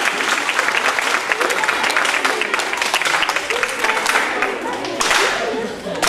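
A group of children clap their hands in a fast rhythm.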